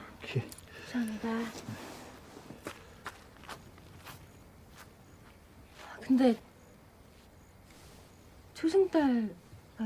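A woman speaks softly, then with urgency.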